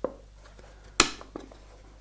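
Wood knocks lightly against wood.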